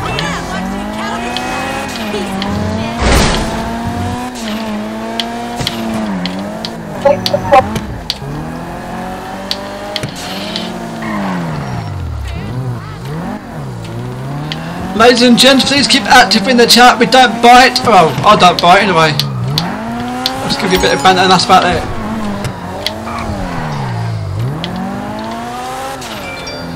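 A car engine hums and revs up and down as a car speeds along.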